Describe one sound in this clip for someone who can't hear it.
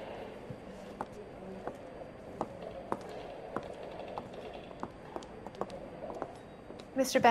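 High heels click on a hard floor at a steady pace.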